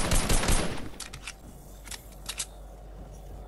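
A gun clicks as it is reloaded.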